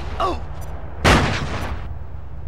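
A stun grenade goes off with a loud bang.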